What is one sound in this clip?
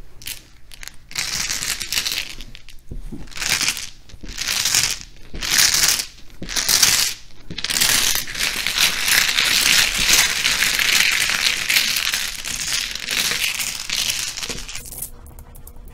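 Tiles clatter and rattle as hands shuffle them across a table.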